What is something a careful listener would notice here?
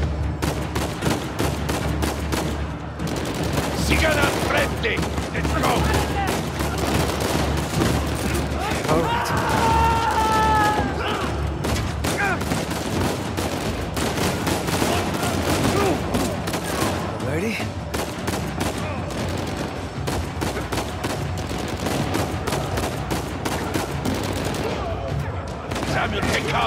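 Gunshots crack in rapid bursts, echoing in a large hall.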